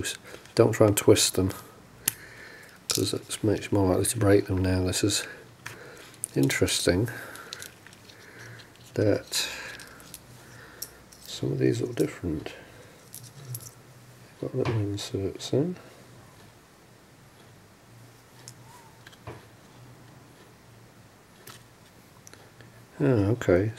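Small plastic parts click and scrape as fingers handle them.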